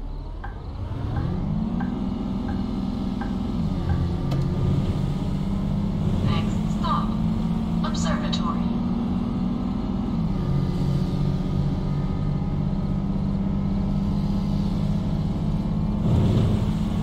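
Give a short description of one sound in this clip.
A bus engine hums steadily, rising and falling in pitch as the bus changes speed.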